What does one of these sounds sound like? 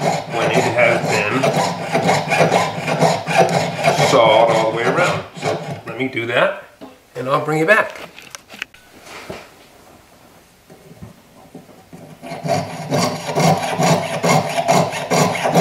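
A small file rasps back and forth against metal.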